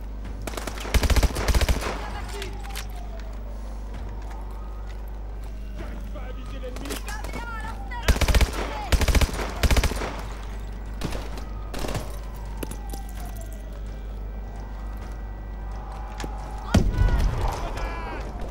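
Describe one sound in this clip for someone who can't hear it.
Automatic gunfire rattles in short, loud bursts.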